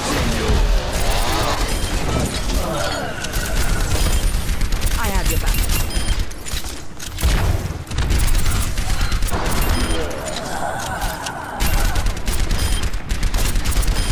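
A gun fires rapid, punchy shots.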